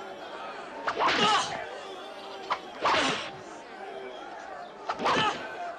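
A whip cracks sharply against a man's back, several times.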